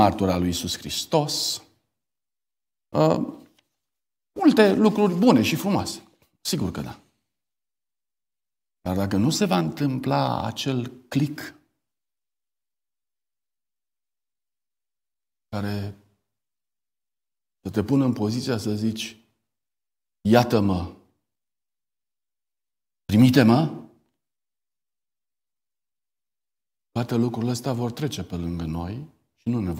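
A man speaks calmly into a microphone in short phrases with long pauses.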